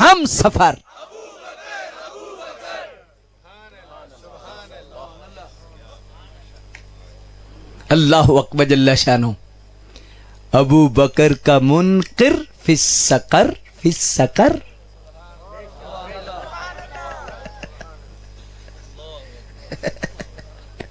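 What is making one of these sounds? A man speaks with animation into a microphone, heard through loudspeakers.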